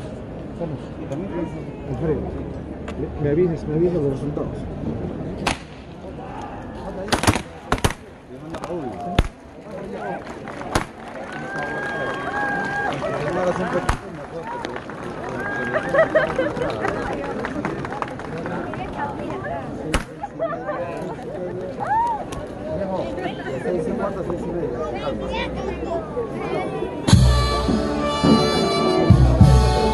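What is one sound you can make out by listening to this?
A crowd of men and women talks and calls out outdoors.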